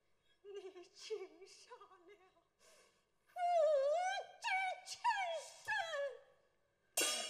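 A woman sings in a high, wavering opera voice.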